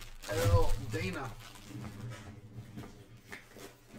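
Plastic packs rustle and crinkle as hands handle them.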